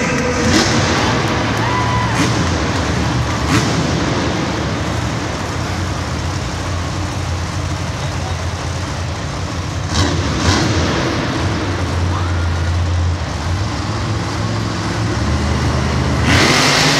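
Monster truck engines rumble in a large echoing stadium.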